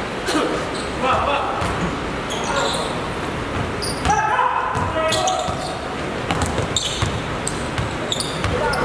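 Sneakers squeak on a hardwood court in a large echoing hall.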